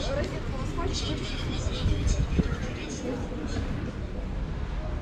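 Young women chat quietly nearby outdoors.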